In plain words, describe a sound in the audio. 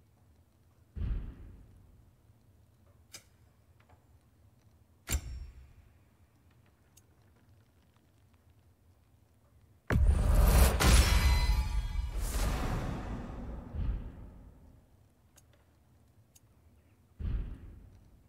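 Short whooshing menu sounds play as pages switch.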